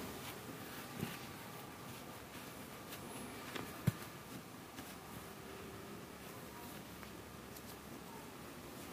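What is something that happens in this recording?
A metal spoon stirs chopped vegetables in a steel pot, scraping and clinking against the side.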